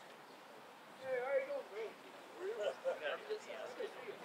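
A man speaks through a microphone and loudspeaker outdoors.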